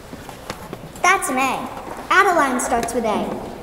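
A young girl speaks clearly in an echoing hall.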